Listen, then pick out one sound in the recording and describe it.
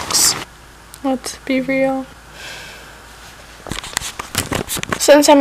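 A young woman speaks softly and sleepily close by.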